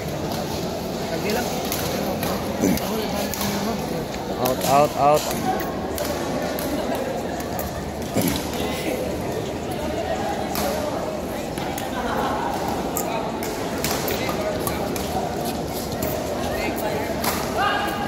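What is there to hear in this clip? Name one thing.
Badminton rackets hit a shuttlecock in a large echoing hall.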